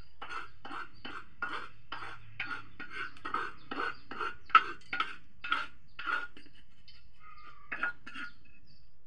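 A spoon scrapes and taps rhythmically against a clay bowl.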